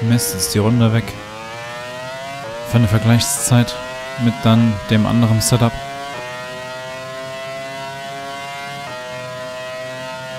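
A racing car engine revs back up and climbs in pitch.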